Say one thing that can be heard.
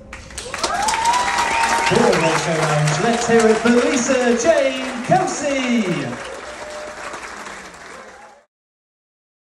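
A woman sings a held, gliding melody into a microphone in a large echoing hall.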